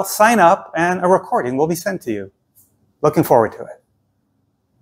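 An older man speaks calmly and clearly into a clip-on microphone, close by.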